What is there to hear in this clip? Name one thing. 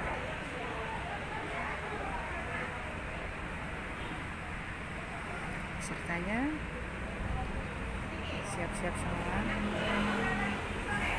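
Many women chatter nearby in a lively hubbub.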